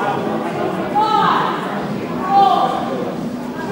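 A player shouts loudly in a large echoing hall.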